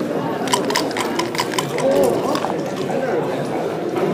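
Dice clatter across a board.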